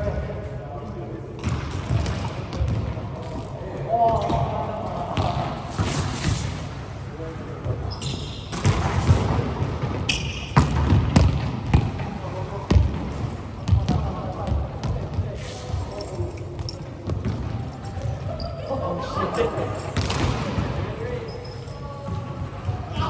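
Players hit a volleyball in a large echoing hall.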